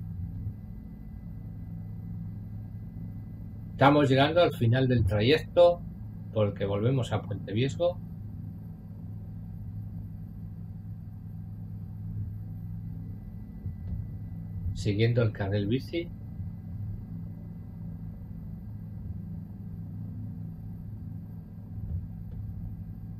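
A helicopter engine and rotor drone steadily.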